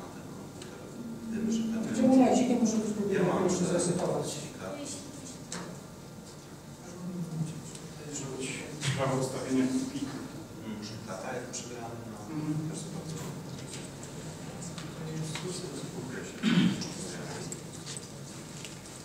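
A man speaks into a nearby microphone.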